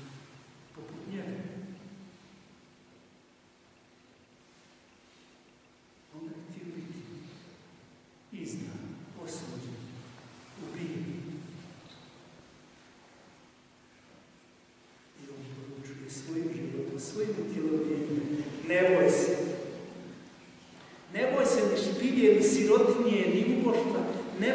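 An elderly man speaks with animation through a microphone in an echoing hall, pausing between phrases.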